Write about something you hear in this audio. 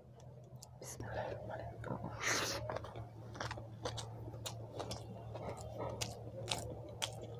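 A person chews food wetly close to a microphone.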